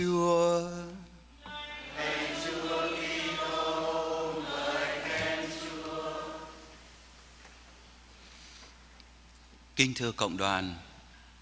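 A young man chants a reading aloud through a microphone in an echoing hall.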